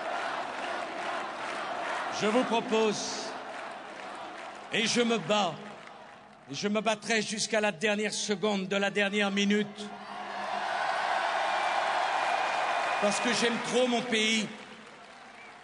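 A large crowd cheers and roars outdoors.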